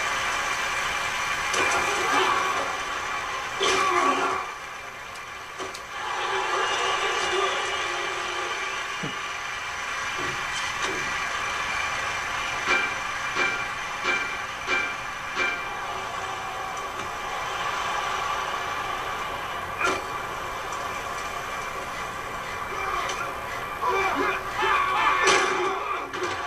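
A stadium crowd cheers and roars steadily.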